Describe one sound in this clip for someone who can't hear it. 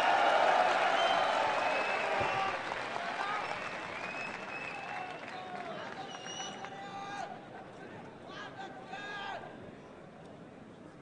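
A crowd cheers loudly in a large echoing hall and slowly quiets down.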